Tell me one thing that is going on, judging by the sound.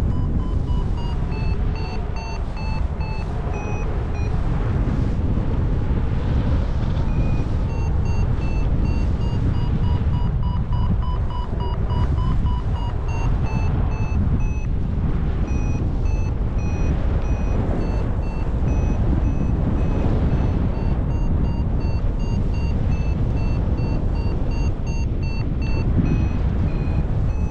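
A flight instrument beeps in quick, short tones that shift up and down in pitch.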